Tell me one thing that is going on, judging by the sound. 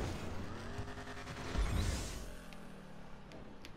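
A car engine hums.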